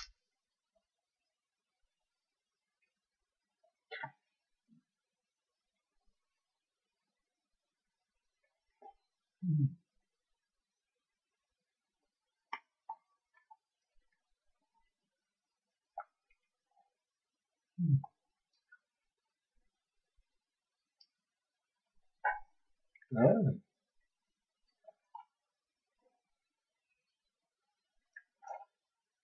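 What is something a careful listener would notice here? A man chews and crunches food close by.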